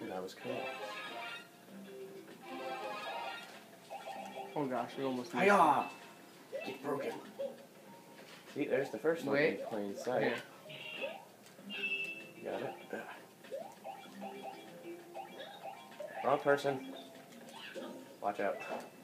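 Bouncy game music plays through a television speaker.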